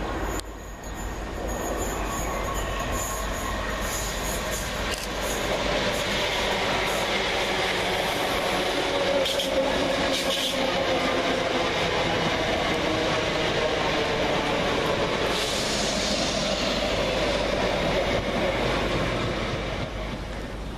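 An electric train approaches and rumbles past close by, its wheels clattering on the rails.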